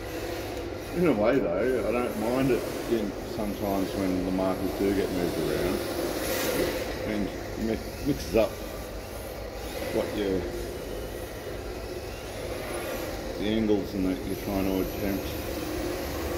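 A toy car's electric motor whines and revs up and down, echoing in a large empty hall.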